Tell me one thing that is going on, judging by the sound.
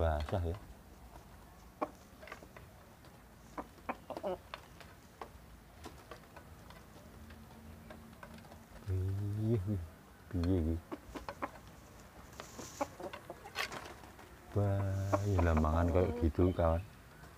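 Chickens peck at food with light taps.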